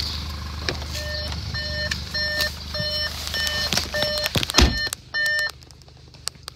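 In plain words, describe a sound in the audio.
A car's warning chime beeps repeatedly at an even pace.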